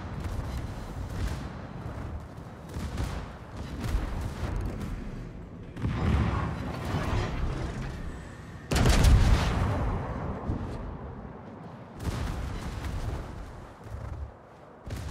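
Heavy naval guns fire in loud, deep booming bursts.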